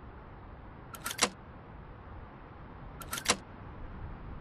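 Short sharp menu clicks sound twice.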